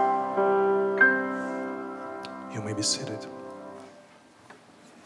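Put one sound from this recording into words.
A piano plays a closing chord that rings and fades.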